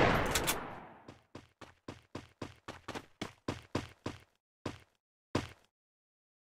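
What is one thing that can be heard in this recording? Quick footsteps tap across a hard floor.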